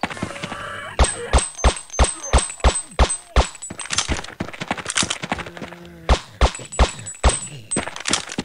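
Footsteps thud on the ground at a steady walking pace.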